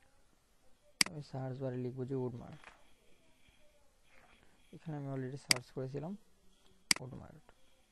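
A computer mouse clicks sharply.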